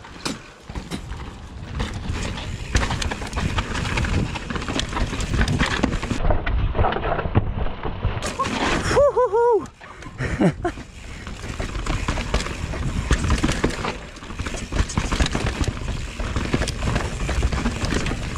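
Mountain bike tyres rattle and crunch over a rough dirt trail.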